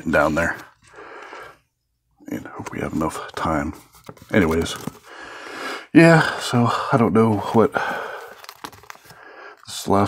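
Plastic binder sleeves crinkle as cards are slid into them.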